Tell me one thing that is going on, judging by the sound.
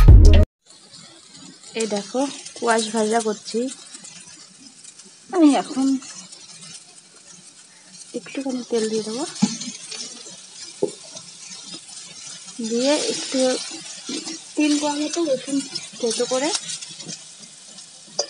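Vegetables sizzle softly in hot oil in a pan.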